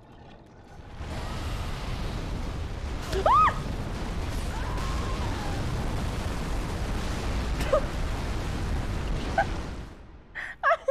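A deep roaring rumble of a blast swells and holds.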